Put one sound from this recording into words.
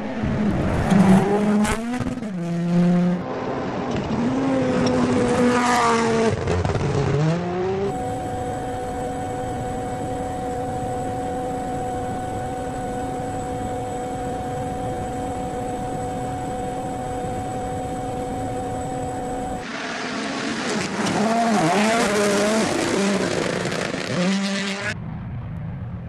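Gravel sprays and crunches under spinning tyres.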